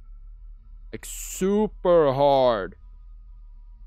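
A young man screams and shouts loudly into a close microphone.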